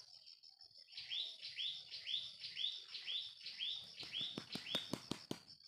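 A bird calls nearby in a fast, repeated series of sharp chirps.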